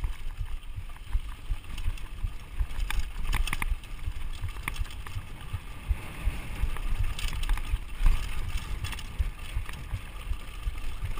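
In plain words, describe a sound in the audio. Bicycle tyres rumble over a rough dirt trail.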